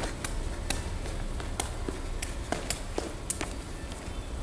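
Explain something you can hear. Shoes tap and scuff on a hard floor in a large echoing hall.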